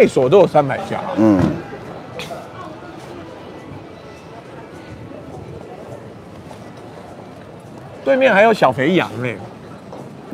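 Street noise of a busy crowd hums steadily outdoors.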